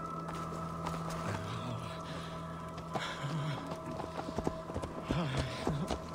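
A horse's hooves clop slowly on dirt.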